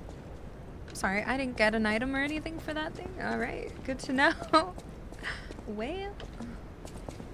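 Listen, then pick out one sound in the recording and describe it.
A young woman talks casually and close into a microphone.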